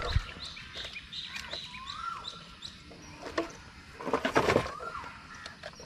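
Water laps softly against a small boat.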